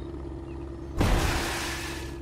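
A heavy truck lands with a thud.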